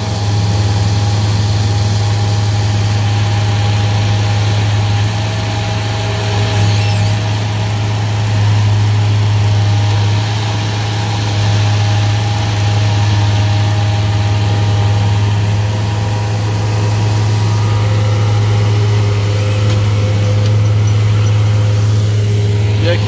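A small engine rumbles and drones steadily close by.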